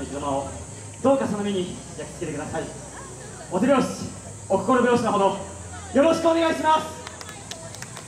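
Two young men shout out loudly in turn outdoors.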